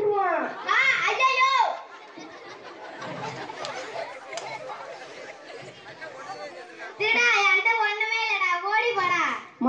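A boy sings loudly through a microphone and loudspeaker.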